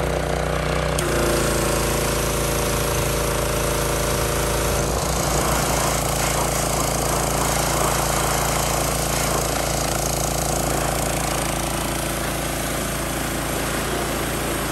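Water sprays hard from a pressure washer nozzle, hissing.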